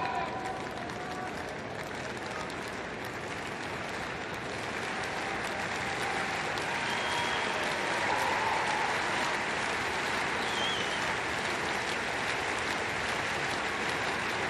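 A large crowd murmurs and cheers in an open stadium, growing louder.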